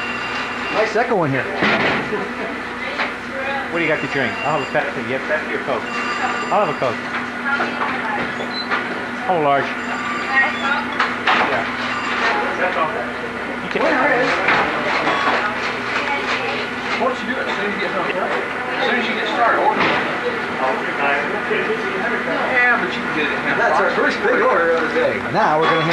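A crowd of men chatter in a busy, echoing room.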